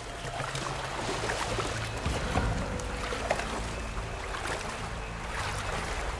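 Water splashes and ripples as a swimmer moves through a stream.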